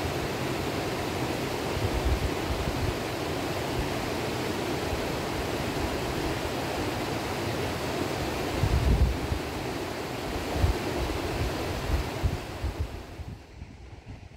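A stream rushes and splashes over rocks nearby.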